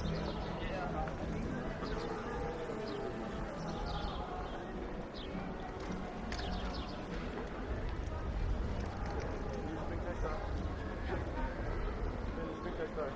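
Footsteps shuffle on paving stones.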